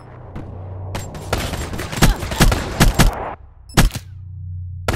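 Rapid gunshots ring out in short bursts.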